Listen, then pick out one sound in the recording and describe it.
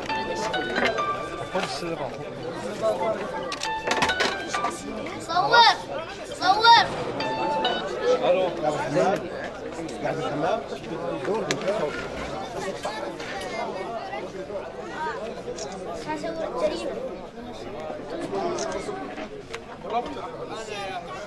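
Several men talk at once nearby, in an animated way.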